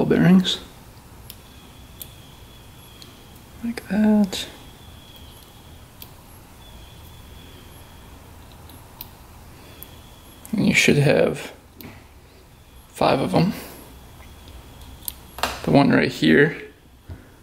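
Small metal parts click softly as hands turn them.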